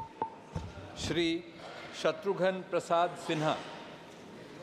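A man speaks clearly into a microphone, heard over loudspeakers in a large hall.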